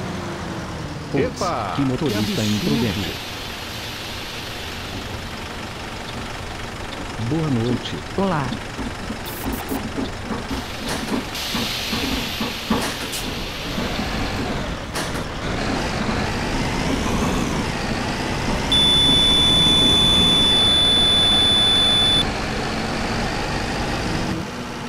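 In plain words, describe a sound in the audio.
A diesel city bus engine rumbles as the bus drives.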